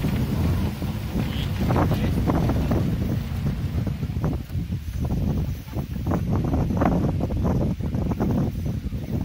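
Small waves slap and splash against the side of a boat.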